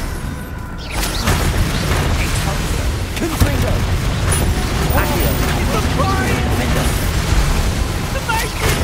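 Magic spells crackle and burst with fiery whooshes.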